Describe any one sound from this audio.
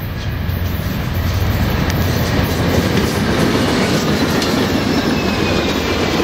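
Train wheels clatter and squeal on the rails as the train passes close by.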